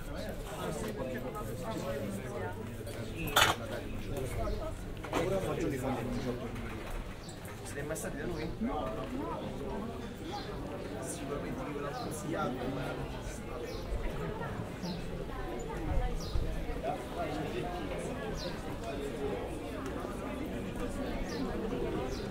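Men and women chat at outdoor tables, their voices overlapping nearby.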